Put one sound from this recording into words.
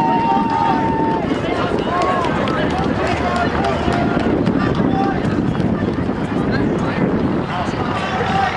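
A crowd of spectators chatters and calls out nearby, outdoors.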